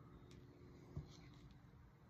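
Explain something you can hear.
A plastic cup is set down on a table with a light tap.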